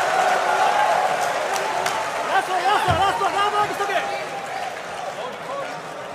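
A man counts out loud, shouting.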